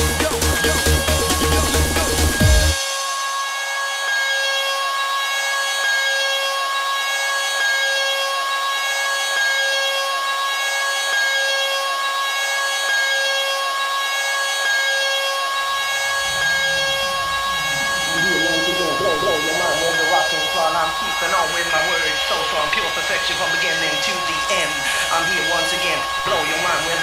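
Electronic dance music plays loudly from a DJ mixer.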